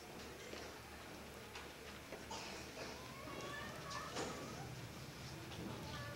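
An orchestra plays faintly in a large echoing hall.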